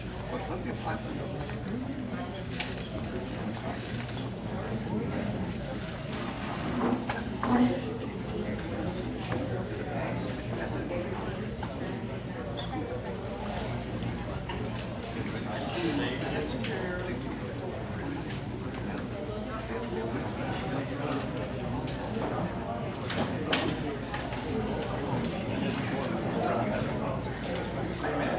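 Several adults murmur and talk quietly in a large echoing room.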